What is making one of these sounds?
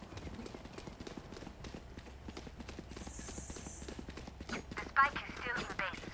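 Footsteps run on pavement in a video game.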